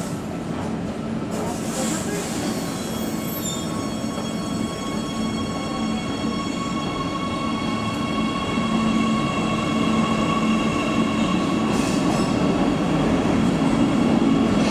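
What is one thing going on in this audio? A train's electric motors whine with rising tones.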